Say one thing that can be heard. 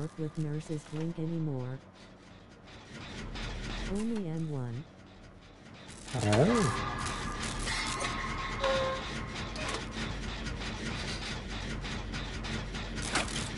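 A machine rattles and clanks steadily as it is worked on.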